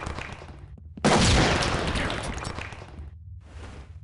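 A stun grenade bursts with a loud bang that rings out.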